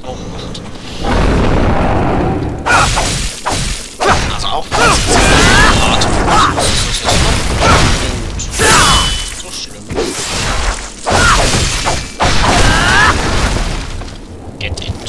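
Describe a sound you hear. Blades clash and thud in loud, quick blows.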